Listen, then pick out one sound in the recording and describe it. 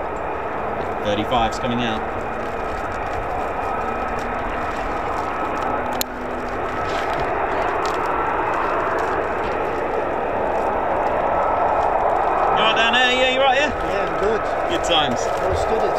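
Jet engines roar steadily in the distance.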